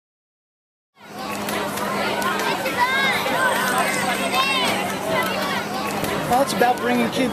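A large crowd of children cheers and chants loudly outdoors.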